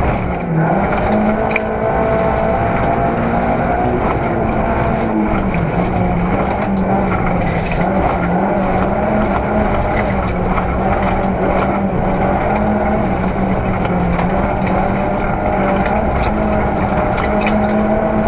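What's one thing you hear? Gravel and stones rattle against the car's underside.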